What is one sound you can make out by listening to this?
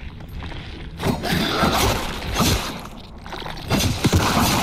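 Heavy blows thud as a fighter strikes a creature.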